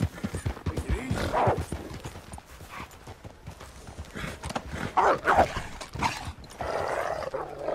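Horse hooves pound on dirt at a gallop.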